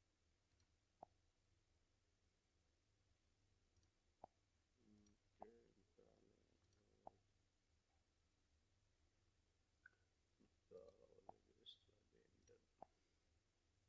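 A computer mouse clicks sharply a few times.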